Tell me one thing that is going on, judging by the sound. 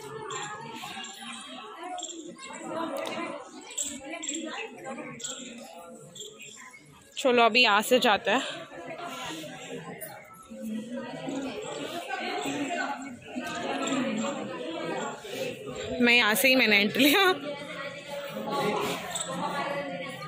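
Men and women chatter nearby in an echoing hall.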